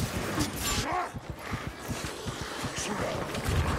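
Monsters snarl and growl.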